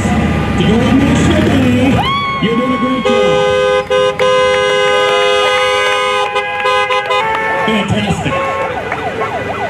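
People cheer and shout from passing vehicles outdoors.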